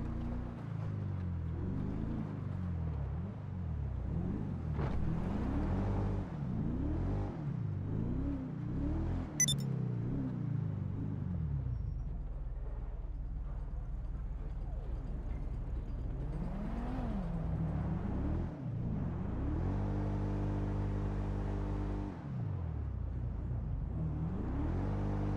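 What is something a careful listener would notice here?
A car engine revs up and down while driving.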